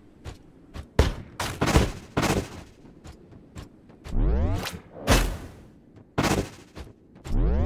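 A gun fires in short bursts.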